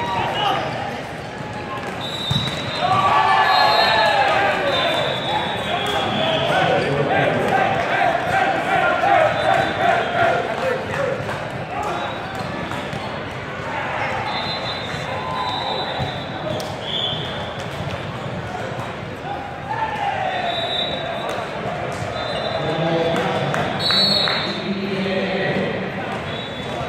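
Voices of a crowd of players and spectators chatter and shout in a large echoing hall.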